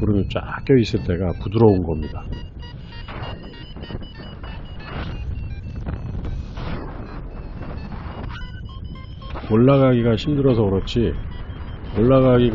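Wind rushes and buffets steadily outdoors high in the air.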